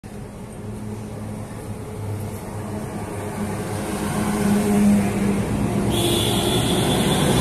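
Traffic hums steadily on a street outdoors.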